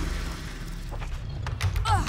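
A wooden door rattles as it is pushed.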